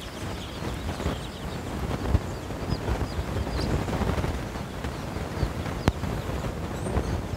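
Chicks cheep in high, quick peeps close by.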